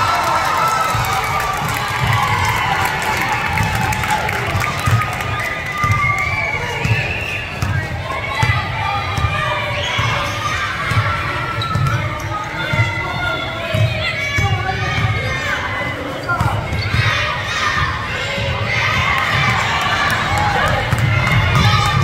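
Young women shout and call out.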